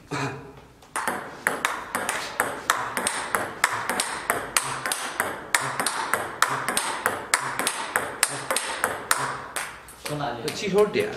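Table tennis balls click rapidly against a paddle and table.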